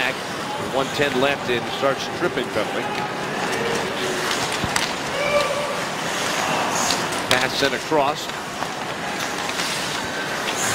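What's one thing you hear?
Skate blades scrape across the ice.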